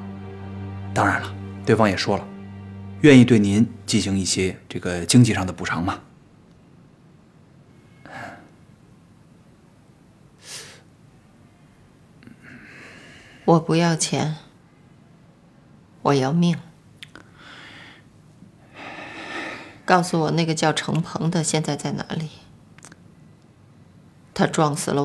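A middle-aged woman speaks calmly and earnestly nearby.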